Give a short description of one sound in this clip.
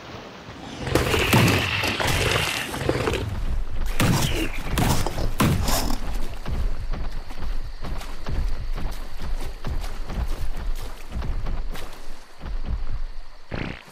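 Water splashes and churns as a large creature swims through it.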